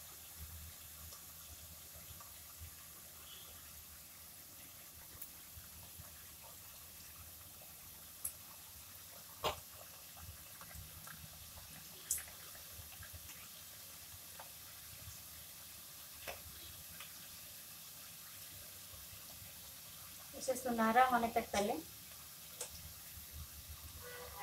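Oil sizzles and bubbles steadily.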